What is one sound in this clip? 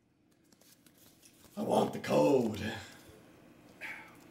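A card pack crinkles as it is torn open.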